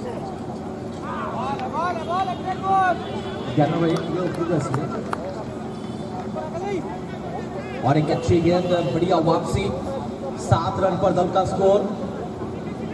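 Young men shout and call out loudly outdoors, close by.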